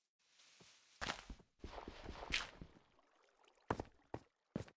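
Blocks of earth crumble and break loose.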